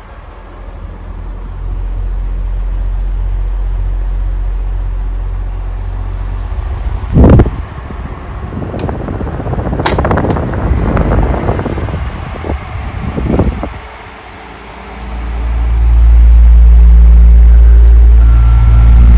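An electric fan hums and whirs steadily close by.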